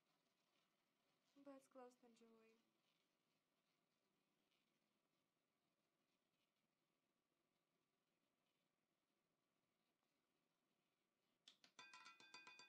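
A roulette ball rolls and rattles around a spinning wheel.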